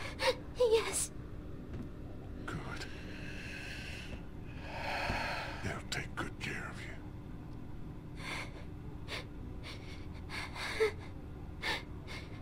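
A young man speaks into a microphone in short, calm bursts.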